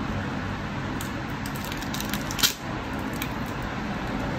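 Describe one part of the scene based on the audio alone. Adhesive crackles and tears as a battery is pried loose.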